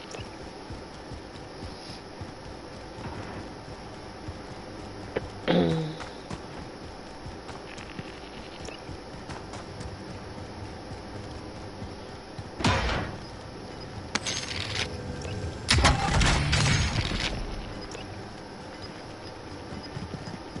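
Footsteps run steadily over hard ground.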